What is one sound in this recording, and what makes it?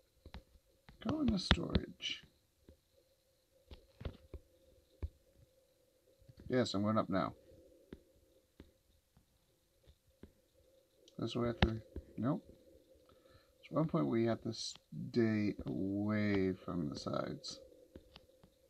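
A man talks calmly into a headset microphone, close by.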